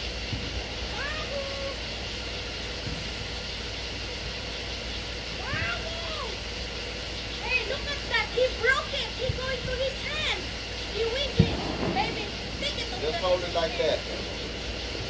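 A young child talks and squeals excitedly nearby.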